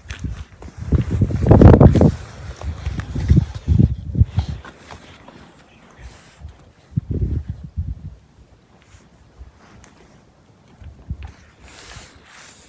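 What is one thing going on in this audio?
Footsteps crunch on dry, sandy ground outdoors.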